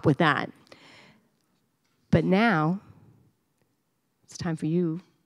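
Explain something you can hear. A middle-aged woman speaks expressively into a microphone, heard through a loudspeaker in a hall with echoes.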